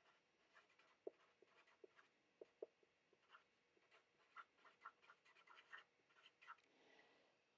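A marker squeaks and taps on paper.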